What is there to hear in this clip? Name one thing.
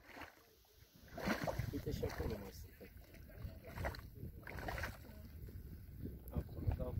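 Mud bubbles and plops softly in a pool.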